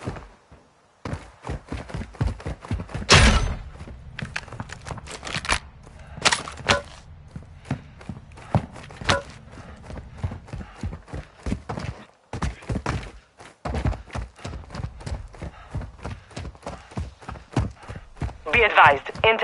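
Footsteps patter quickly over dirt and gravel.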